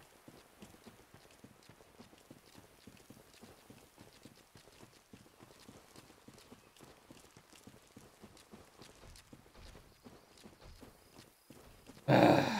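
Footsteps crunch quickly over the ground.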